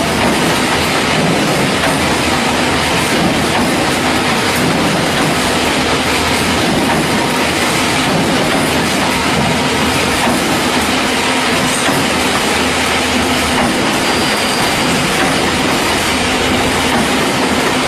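A large machine clatters and rumbles steadily as it weaves wire mesh.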